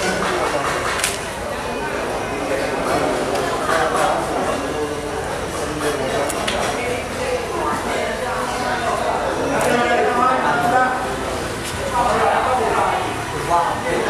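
A knife slices and thuds through fish flesh on a wet board.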